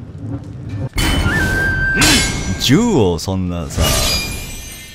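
A hammer strikes hot metal with a ringing clang.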